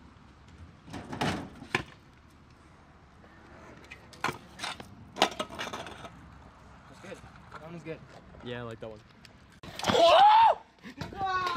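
A scooter's wheels clack on pavement.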